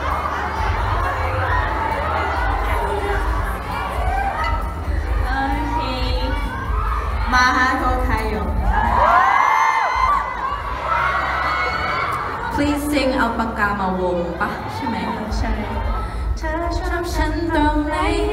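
A crowd chatters and cheers nearby.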